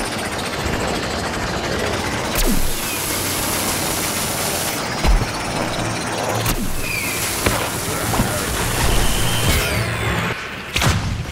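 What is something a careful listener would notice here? A video game's hovering craft roars on jet thrusters.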